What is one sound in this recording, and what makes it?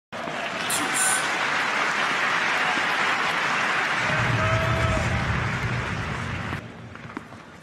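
A crowd applauds and cheers loudly, then dies down.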